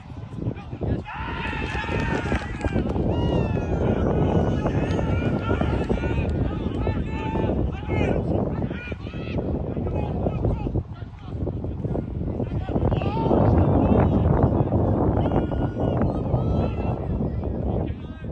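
Players shout and call to each other across an outdoor field.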